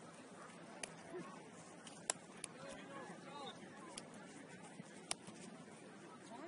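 Players and spectators call out across an open field, distant and faint.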